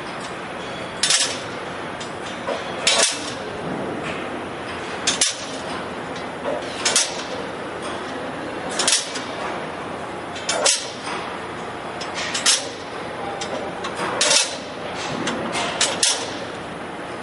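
Metal plates clack and hiss as they shift along one by one.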